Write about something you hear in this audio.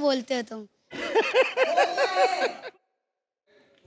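A woman laughs loudly into a microphone.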